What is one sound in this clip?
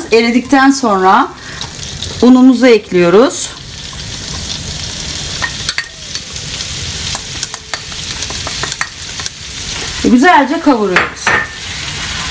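Butter sizzles and crackles in a hot pan.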